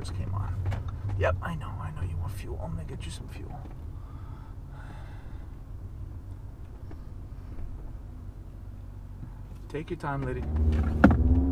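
A car engine hums low and steady.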